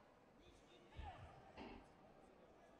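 Kicks thud against padded body protectors.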